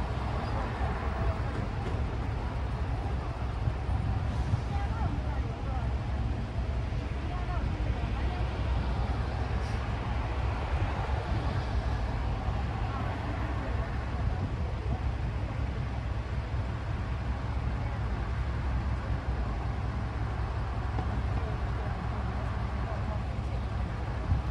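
Cars drive past on a nearby road, their tyres hissing on the asphalt.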